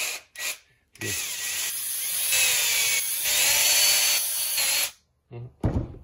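A cordless drill whirs at high speed.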